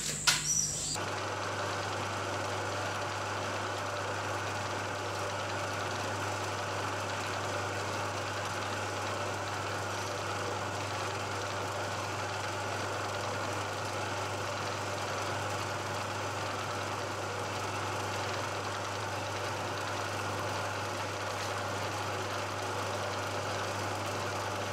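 A milling machine hums steadily.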